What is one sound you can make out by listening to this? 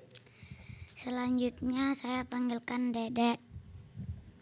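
A young girl sings a short phrase into a microphone over loudspeakers.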